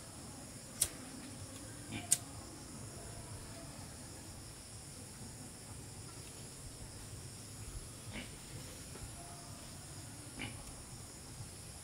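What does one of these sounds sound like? A lighter clicks as it sparks.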